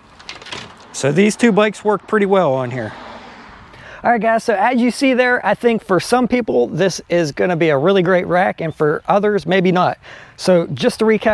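A man talks calmly and clearly to the listener, close by outdoors.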